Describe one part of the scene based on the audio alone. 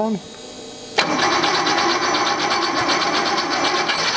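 A car engine starts up and runs with a loud, rough, rapid idle.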